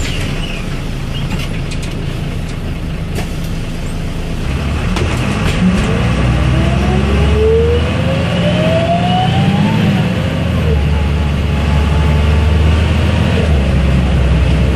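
A bus interior rattles and creaks over the road.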